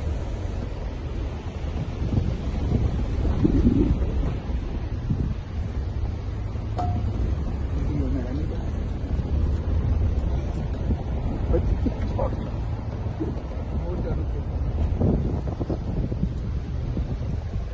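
A river rushes and roars nearby.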